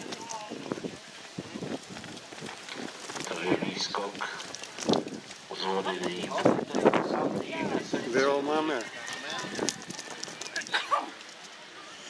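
A horse's hooves thud on grass at a gallop.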